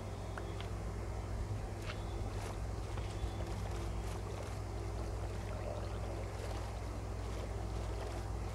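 Wooden oars splash rhythmically in water as a boat rows along.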